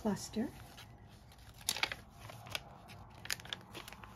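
A page of a book turns.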